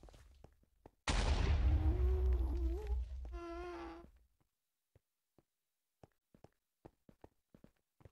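Footsteps crunch steadily on hard stone.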